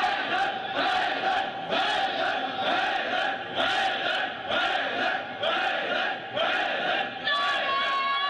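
A large crowd of men chants together in a steady rhythm.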